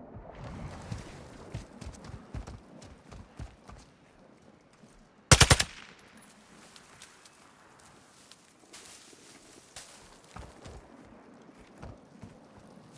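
Footsteps thud and rustle through grass and brush.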